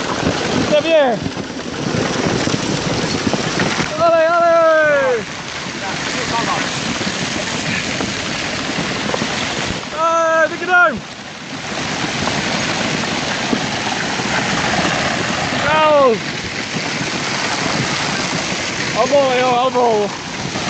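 Hail pours down hard, pattering loudly on the ground.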